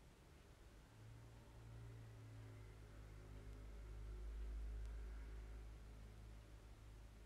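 A young woman hums softly close by.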